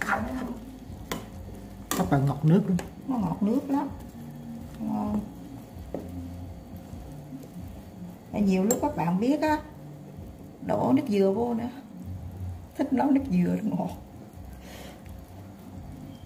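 A metal ladle clinks and scrapes against a steel pot.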